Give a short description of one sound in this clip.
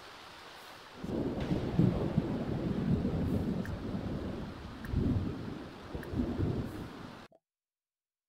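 Rain patters steadily.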